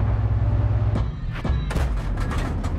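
A tank cannon fires with a loud bang.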